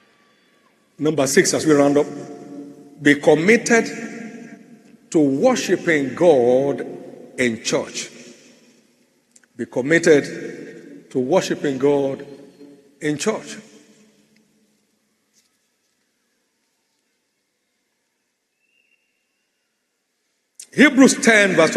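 A man speaks slowly and deliberately into a microphone, in bursts with long pauses.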